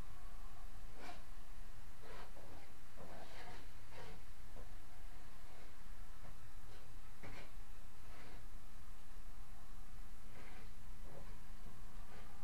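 A trowel scrapes and smooths plaster on a wall.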